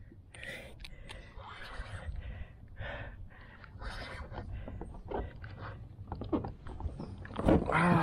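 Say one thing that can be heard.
A fishing reel clicks as the line is wound in.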